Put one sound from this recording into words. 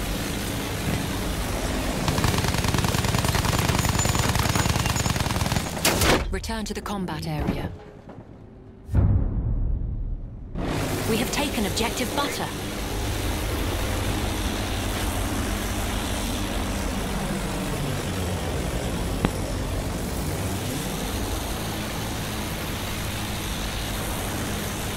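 A propeller plane engine drones loudly, its pitch rising and falling.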